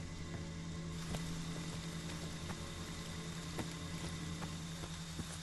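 Footsteps tread over wet ground.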